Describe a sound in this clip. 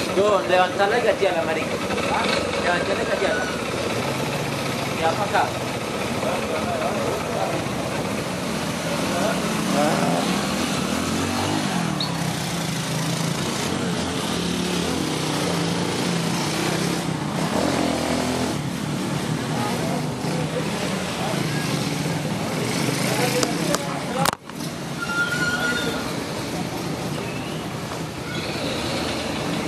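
A truck's diesel engine idles with a low rumble.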